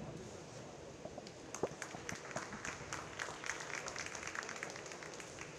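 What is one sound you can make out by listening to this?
Spectators clap.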